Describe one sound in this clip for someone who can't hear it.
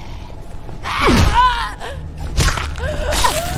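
A blade strikes a body with a heavy thud.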